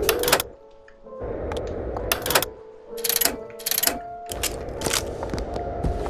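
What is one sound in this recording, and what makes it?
Metal weapon parts click and clank as a gun is swapped.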